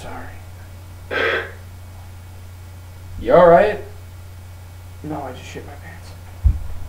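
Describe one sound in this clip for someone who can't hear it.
A young man speaks nearby in a casual voice.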